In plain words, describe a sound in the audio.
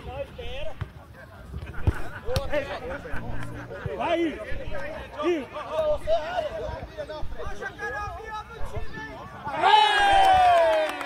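Men shout to each other across an outdoor field.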